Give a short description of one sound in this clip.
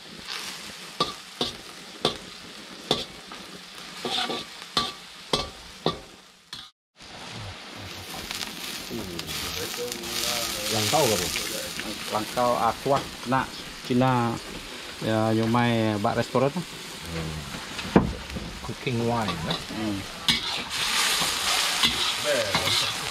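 Food sizzles in a hot wok.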